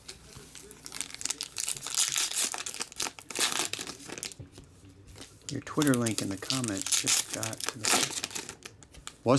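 A foil card wrapper crinkles and tears as it is pulled open.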